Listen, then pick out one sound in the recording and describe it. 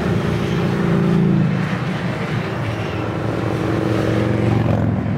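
Motorcycle engines rumble loudly as a line of bikes passes close by.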